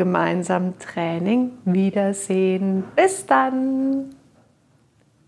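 A middle-aged woman speaks calmly and clearly into a close microphone.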